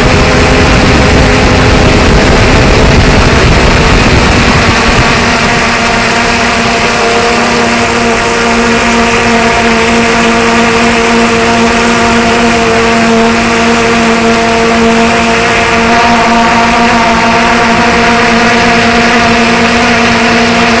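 Drone propellers whine loudly and steadily close by.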